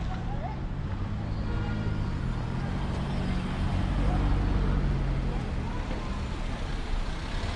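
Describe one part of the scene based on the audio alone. A car engine hums as the car drives slowly past.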